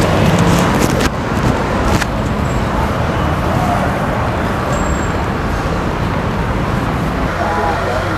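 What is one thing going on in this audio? Traffic hums along a busy city street.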